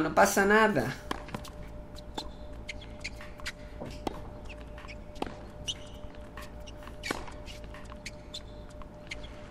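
Tennis balls are struck with a racket in sharp pops.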